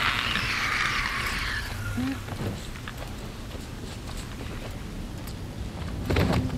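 Footsteps creak softly on a wooden floor.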